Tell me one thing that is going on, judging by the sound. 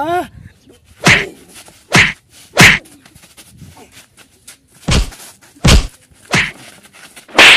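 Loud slaps and thuds sound as men scuffle.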